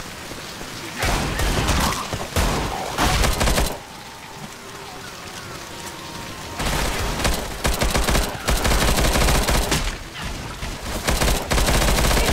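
An automatic rifle fires rapid bursts at close range.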